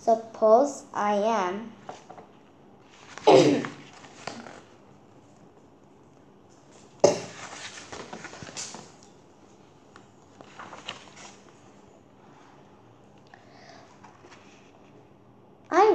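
A young girl reads aloud close by.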